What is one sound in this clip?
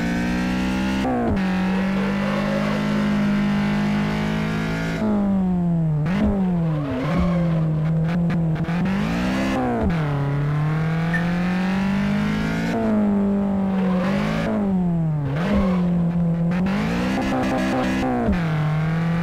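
A car engine in a racing game revs up and drops in pitch as it shifts gears.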